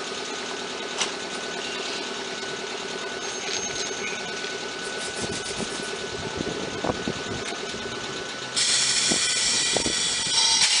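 Electrical contactors clack in an electric train's control box.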